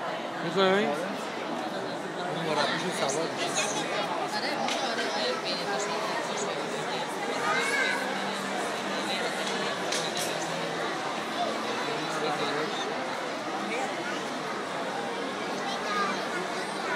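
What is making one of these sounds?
A large crowd of spectators chatters and murmurs in a big echoing hall.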